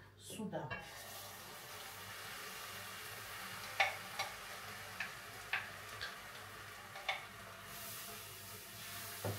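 Food sizzles steadily in a frying pan.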